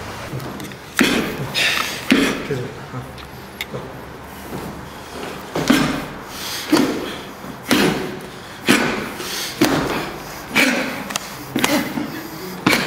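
Hands slap against forearms in quick blows.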